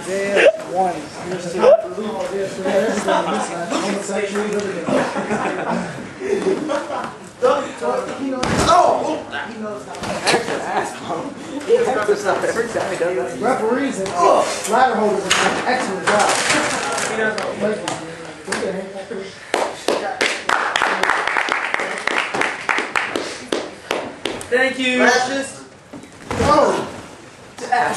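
Young men shout and talk with excitement nearby.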